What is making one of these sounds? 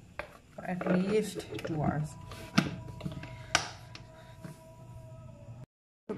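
A plastic lid snaps onto a bowl.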